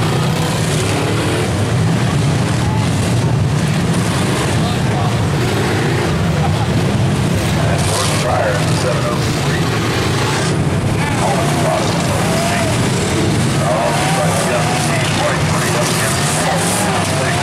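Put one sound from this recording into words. Car engines roar loudly outdoors.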